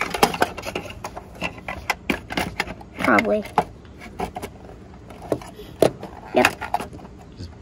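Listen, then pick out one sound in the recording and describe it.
Plastic toy parts click and clatter together.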